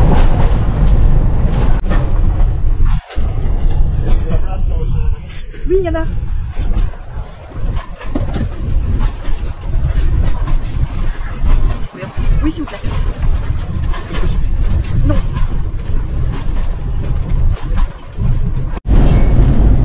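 An old railway carriage rumbles and rattles along the tracks.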